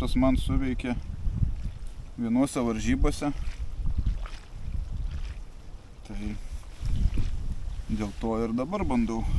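A man talks calmly and close by.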